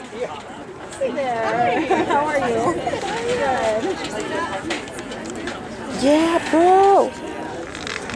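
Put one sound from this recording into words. A marching band plays horns outdoors.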